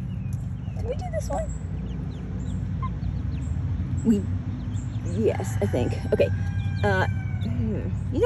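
Hens cluck and chirp softly nearby.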